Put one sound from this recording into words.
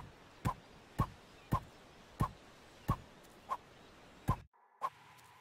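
A golf club strikes a body with sharp, repeated thwacks.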